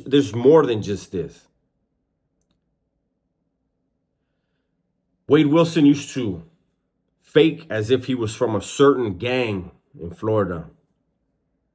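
A man speaks calmly and earnestly into a close microphone, in short bursts with pauses.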